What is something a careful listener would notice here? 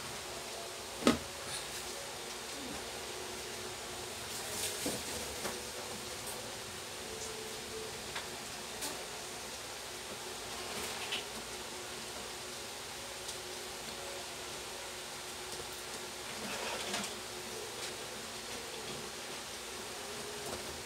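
Wires rustle and scrape as a person handles them with pliers.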